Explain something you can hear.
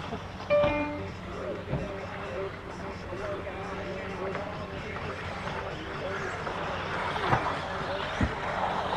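Small electric model cars whine as they race around a track outdoors.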